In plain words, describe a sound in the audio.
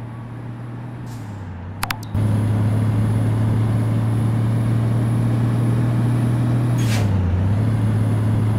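A truck engine dips briefly in pitch as gears change.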